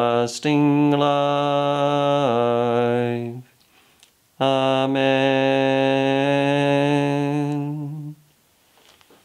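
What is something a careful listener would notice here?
A man sings a slow chant close by, holding long steady notes.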